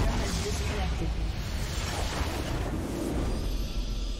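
Magic blasts crackle and burst in a fight.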